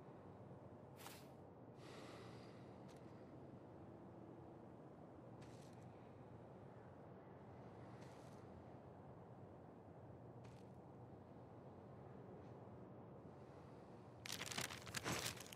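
Paper rustles softly as a map is handled.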